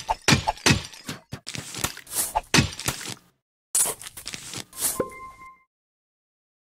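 Cartoon game sounds pop and thump in quick bursts.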